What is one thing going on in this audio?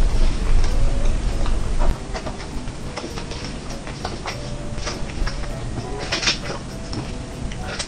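Cooked meat tears and squelches as it is pulled apart.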